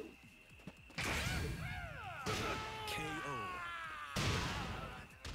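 A bright crackling burst rings out as a blow connects.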